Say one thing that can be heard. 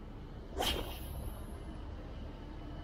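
A fishing line whirs briefly off a spinning reel.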